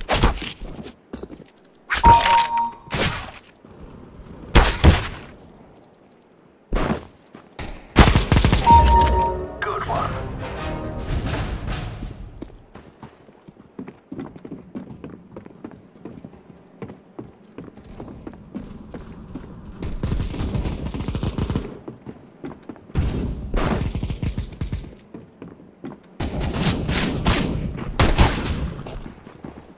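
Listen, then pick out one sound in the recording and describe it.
Gunshots crack in short, rapid bursts.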